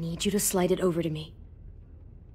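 A young boy speaks quietly and pleadingly.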